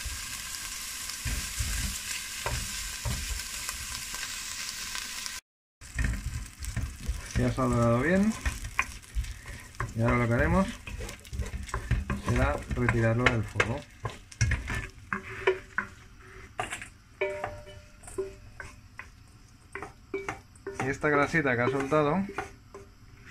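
A wooden spoon scrapes and stirs in a metal pot.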